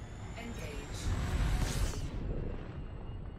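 A spaceship engine roars briefly as it boosts.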